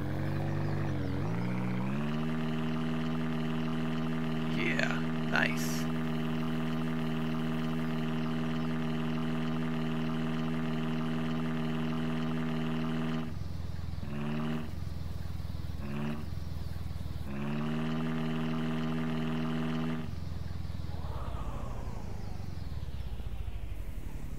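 A small utility vehicle's engine hums steadily, revving up and down as it drives.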